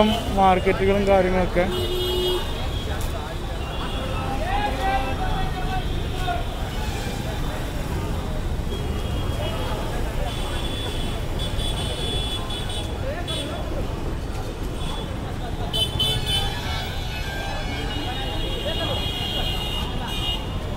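A busy crowd murmurs and chatters outdoors all around.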